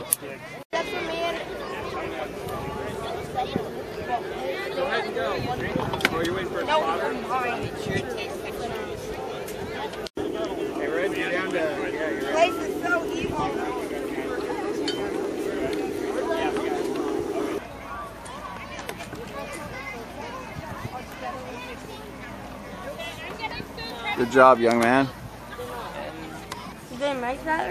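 A crowd of children and adults chatter outdoors.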